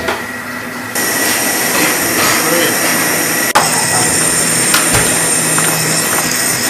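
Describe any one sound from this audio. A blowtorch roars with a steady hiss.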